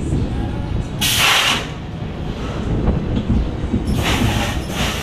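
Brakes hiss sharply as a roller coaster train slows.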